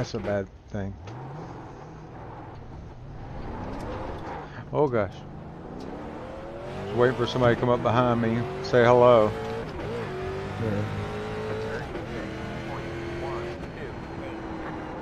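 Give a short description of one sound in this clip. A race car engine revs up and roars, climbing in pitch through gear changes.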